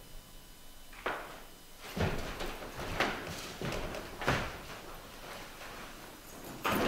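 Footsteps thud and knock on a wooden stage.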